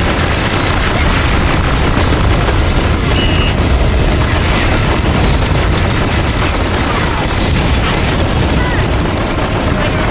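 Cannon shots and explosions boom.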